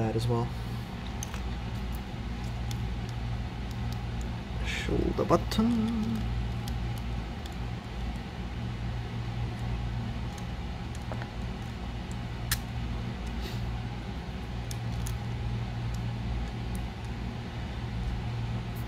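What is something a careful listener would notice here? Small plastic parts click and tap as they are fitted together by hand.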